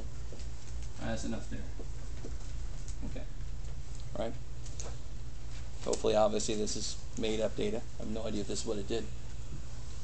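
A man speaks calmly to a room, heard from a few steps away.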